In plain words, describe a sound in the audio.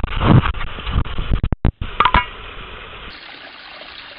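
Water splashes and rushes down a small waterfall.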